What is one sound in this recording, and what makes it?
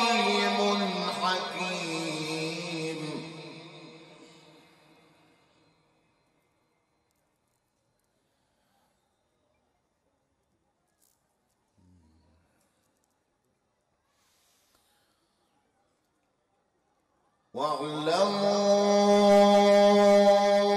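A man chants in a long, drawn-out melodic recitation through a microphone, echoing through loudspeakers.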